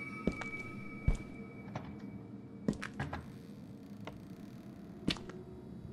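A locked door handle rattles and clicks.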